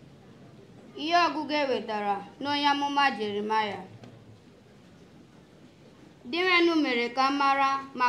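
A young woman sings into a microphone, heard over a loudspeaker.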